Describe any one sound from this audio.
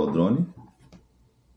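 A man speaks briefly close by.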